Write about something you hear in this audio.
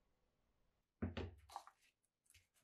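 A sheet of sandpaper rustles as it is laid down.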